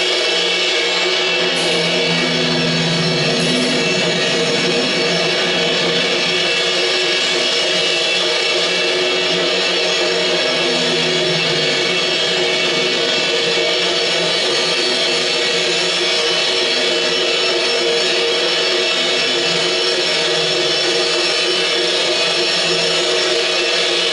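Drumsticks strike cymbals and drums in a loose, noisy clatter.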